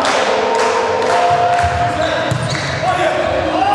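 A volleyball is struck hard by a hand on a serve.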